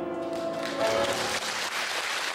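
A piano plays a final chord that rings out.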